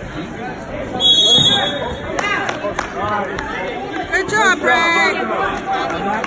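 A referee blows a whistle.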